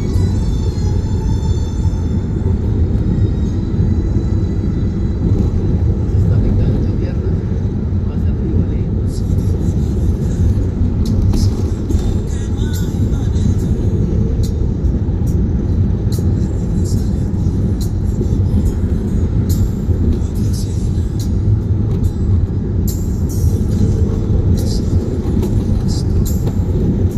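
Wind rushes past the moving car.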